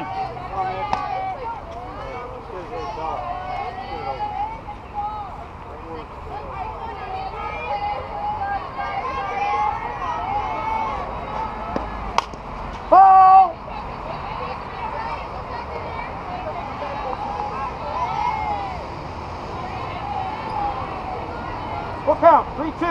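Young women chatter and call out on the field throughout.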